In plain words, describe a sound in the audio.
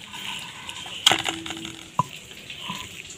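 Bits of food drop into a metal bowl.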